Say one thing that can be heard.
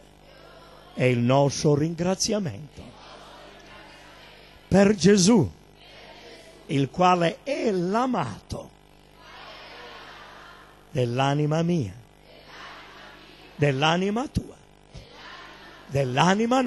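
A middle-aged man speaks with emphasis through a microphone, in bursts with pauses, in a reverberant hall.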